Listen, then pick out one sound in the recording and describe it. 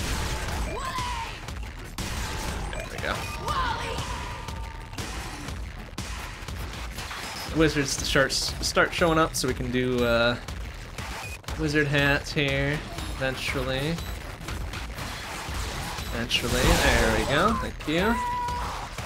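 Video game gunfire and explosions rattle on throughout.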